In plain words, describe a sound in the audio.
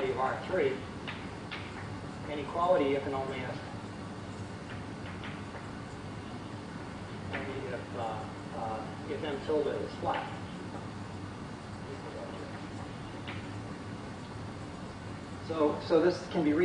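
A middle-aged man lectures calmly, heard from a distance.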